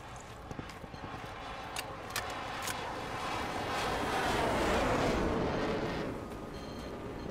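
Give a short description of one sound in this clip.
A jet plane roars overhead and fades away.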